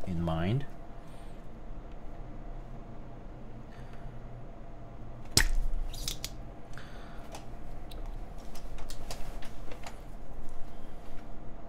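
Small plastic keyboard parts click and tap under a tool.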